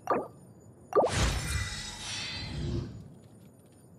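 A bright shimmering chime with a whoosh plays for a level-up.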